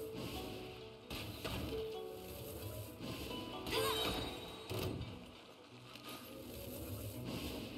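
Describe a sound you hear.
Arrows whoosh from a bow.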